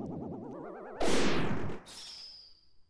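A magical whoosh sweeps upward and fades.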